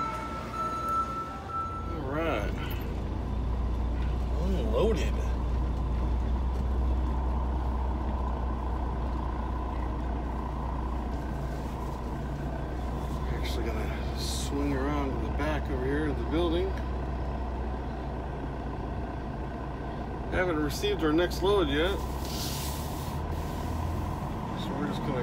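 A truck engine rumbles steadily and low.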